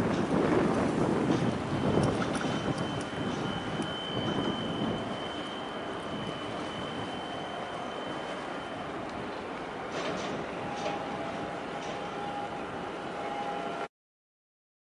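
Wind blows outdoors beside open water.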